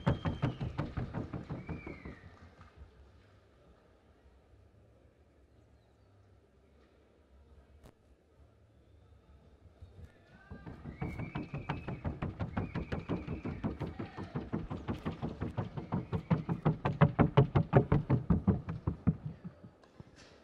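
A Paso Fino horse's hooves beat rapidly on packed earth in a fast trocha gait.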